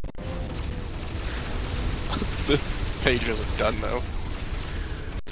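An energy weapon fires crackling blasts.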